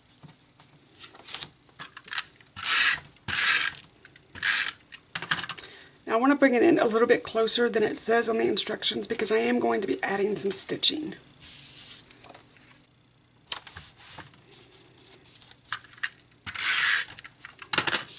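Paper slides and rustles on a table.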